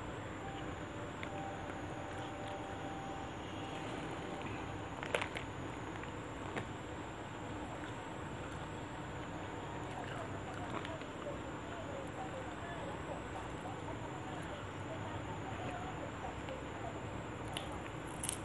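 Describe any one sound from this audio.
A woman chews food with her mouth close by.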